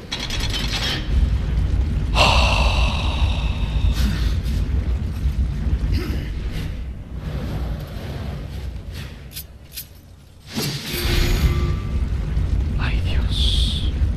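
Fire roars in a deep, steady rumble.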